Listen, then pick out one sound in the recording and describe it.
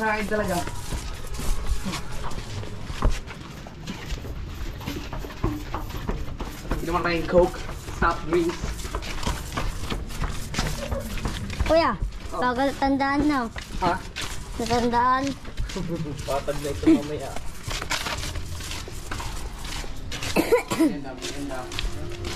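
Footsteps scuff along a concrete path outdoors.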